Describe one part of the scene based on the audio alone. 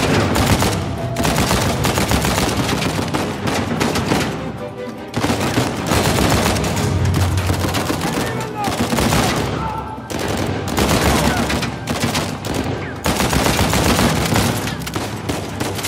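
Rapid gunfire crackles in loud bursts.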